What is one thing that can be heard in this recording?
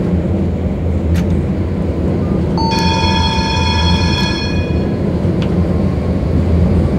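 A tram hums and rumbles steadily along the rails.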